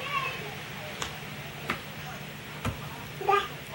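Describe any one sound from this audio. Small hands slap on a wooden floor.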